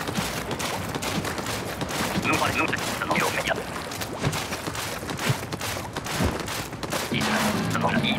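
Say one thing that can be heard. Wet splashing and squelching sounds come as a game character moves through ink.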